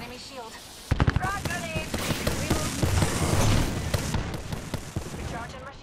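Rapid gunfire bursts out loudly nearby.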